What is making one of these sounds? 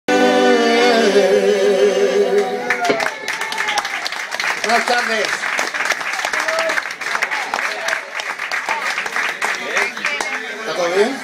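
A crowd of people chatter and talk nearby.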